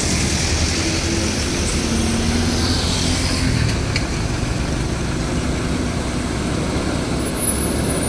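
A tanker truck's engine drones as it drives past.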